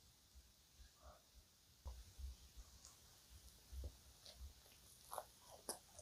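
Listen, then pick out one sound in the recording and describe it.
A young woman chews softly close to a microphone.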